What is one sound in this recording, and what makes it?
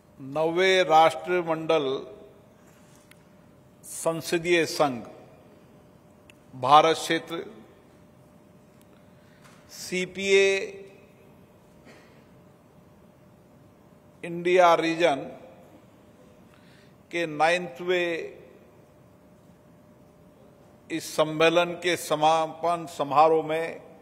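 A man speaks slowly and formally into a microphone over loudspeakers, with long pauses between phrases.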